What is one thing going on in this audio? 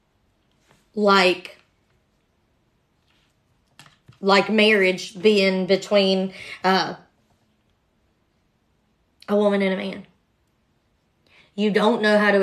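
A young woman speaks close by, in short bursts with pauses.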